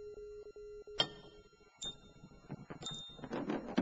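Metal parts clang and scrape as they slide together.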